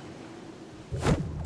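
A figure lands with a thud on a roof.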